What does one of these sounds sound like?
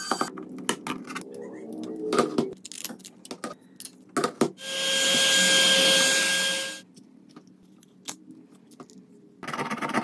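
Plastic pry tools click and scrape as a phone is opened.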